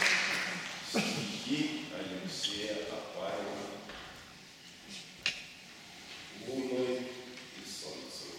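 A man sings in a resonant hall.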